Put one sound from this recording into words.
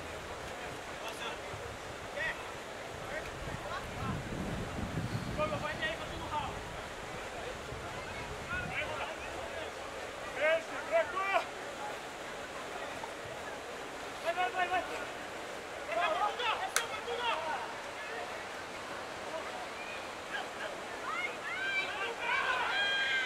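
Young men shout and call out across an open field.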